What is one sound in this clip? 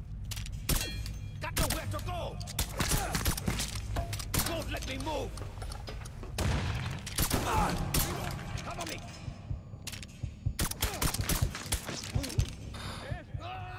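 Pistol shots crack in quick bursts.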